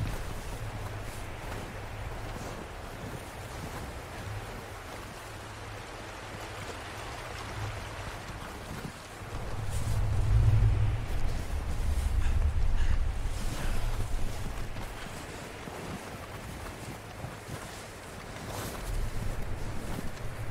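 Wind blows and gusts outdoors.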